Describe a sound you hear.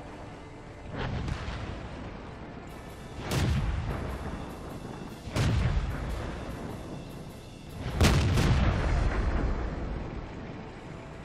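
Tank cannons fire with heavy booming blasts.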